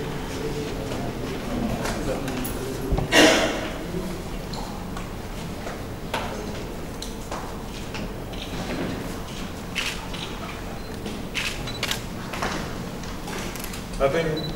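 A man speaks calmly into microphones.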